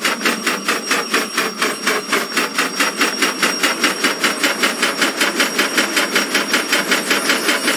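A steam locomotive chuffs in a quick, steady rhythm that slowly speeds up.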